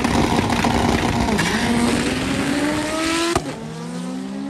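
A race car engine roars loudly and revs up as the car launches.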